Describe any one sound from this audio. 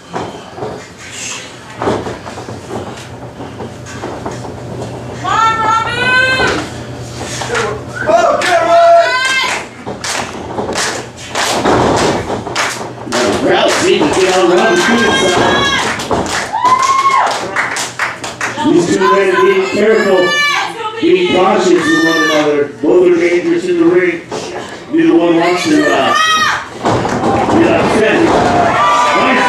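A crowd of men and women shouts and cheers.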